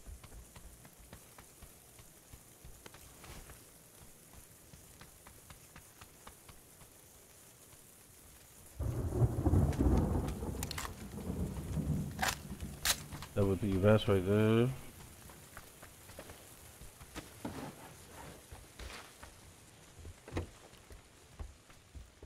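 Footsteps thud softly on hard ground and grass.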